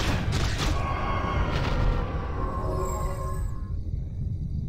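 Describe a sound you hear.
Video game combat effects clash and chime.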